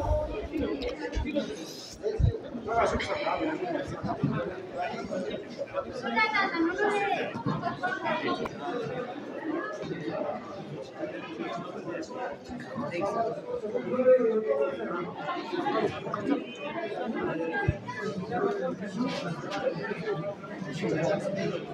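A crowd of men and women chatter in an echoing room.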